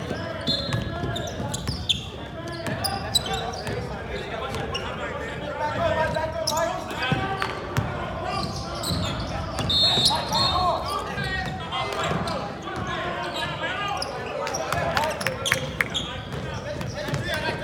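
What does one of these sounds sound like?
A basketball bounces on the floor with thuds echoing in a large hall.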